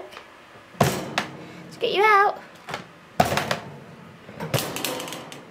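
A rabbit bumps against wire cage bars.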